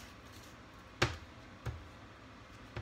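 A knife taps on a cutting board.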